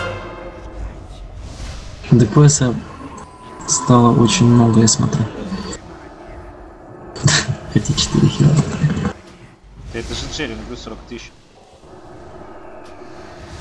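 Magic spells crackle and burst in a fierce fantasy battle.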